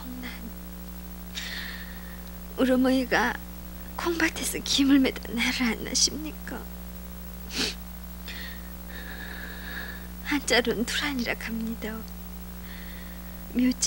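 A woman speaks softly and haltingly, close by.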